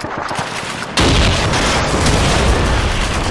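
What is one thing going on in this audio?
An explosion booms loudly with a sudden blast.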